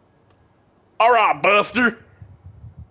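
A second man shouts loudly.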